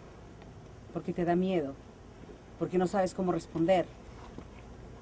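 A middle-aged woman speaks loudly and urgently, outdoors.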